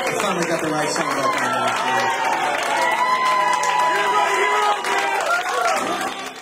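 Guests clap their hands.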